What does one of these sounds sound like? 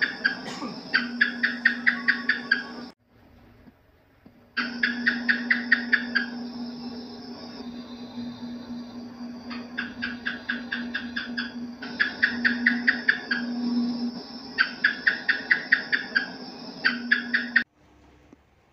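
A gecko chirps in rapid bursts of clicks.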